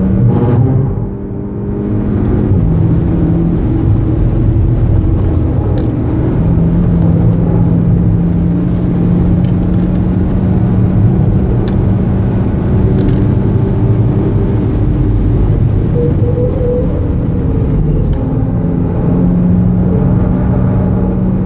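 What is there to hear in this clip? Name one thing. A car engine roars loudly at high revs, rising and falling in pitch as the car speeds up and slows down.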